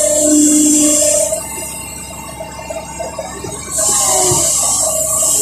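An excavator engine runs steadily.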